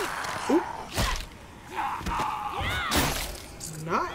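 A heavy blow lands with a sharp thud.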